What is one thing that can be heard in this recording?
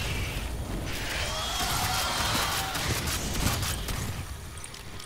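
A flamethrower roars with a rushing whoosh.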